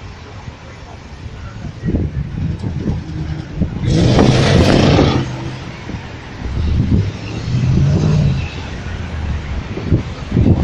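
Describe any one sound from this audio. Traffic rumbles along a city street outdoors.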